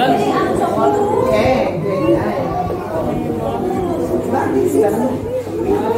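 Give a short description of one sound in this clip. Several men and women chatter close by.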